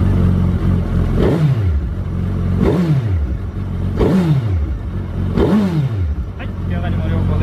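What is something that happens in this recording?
A motorcycle engine revs up sharply and drops back several times.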